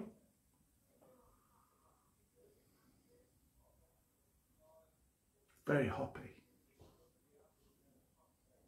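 An older man sniffs a drink.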